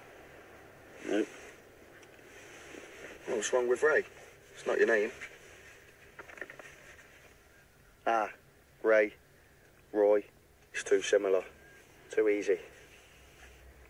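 An older man answers in a low, quiet voice.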